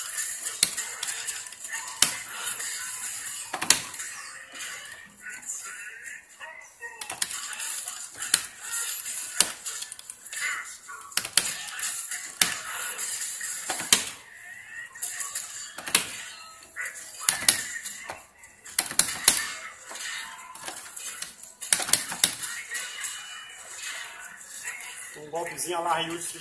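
A joystick knocks and rattles as it is pushed around.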